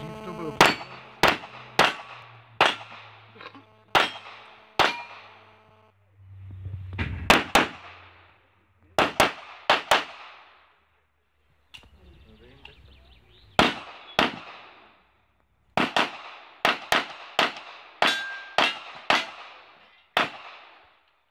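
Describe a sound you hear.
Pistol shots ring out in quick bursts outdoors, echoing off a hillside.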